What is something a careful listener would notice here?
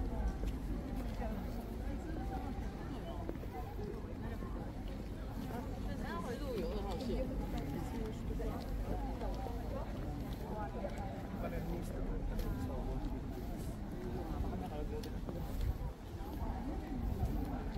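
Footsteps shuffle on stone paving.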